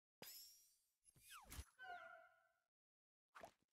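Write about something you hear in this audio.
A game jingle plays a short falling tune.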